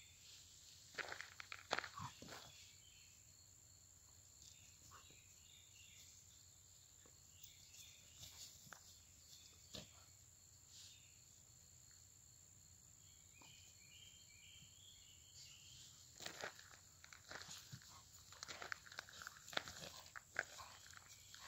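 Two dogs scamper and tussle through dry grass close by.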